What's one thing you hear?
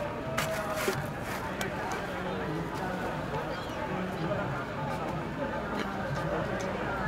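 Footsteps scuff on stone paving close by.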